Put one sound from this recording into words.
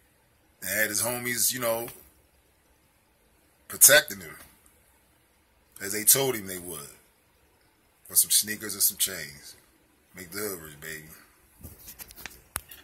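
A young man talks close to a microphone in short, lively bursts.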